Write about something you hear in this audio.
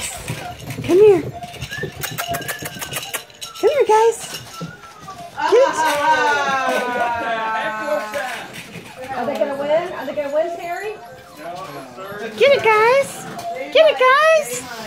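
Puppies whine and yelp close by.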